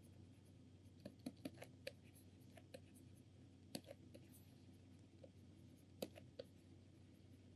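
A pen scratches faintly on a writing pad.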